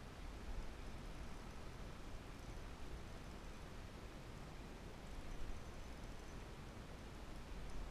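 A fishing reel clicks as it is wound in.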